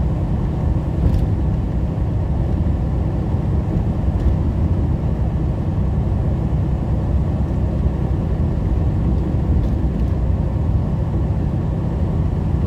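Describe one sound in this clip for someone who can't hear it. A truck engine rumbles steadily from close by.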